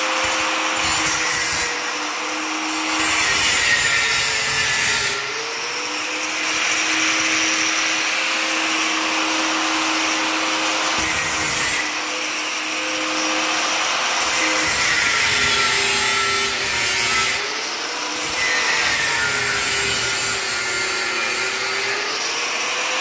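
An angle grinder cuts metal with a harsh, grinding screech, its pitch dropping under load.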